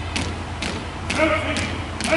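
A man shouts a drill command.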